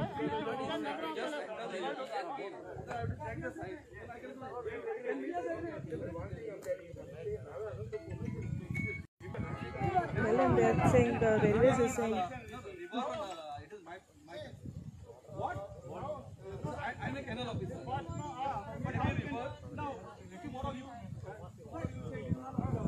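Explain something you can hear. A crowd of men argue loudly outdoors.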